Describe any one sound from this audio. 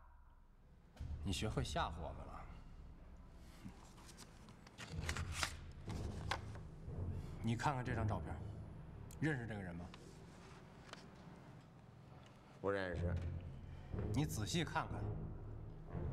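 A younger man speaks calmly.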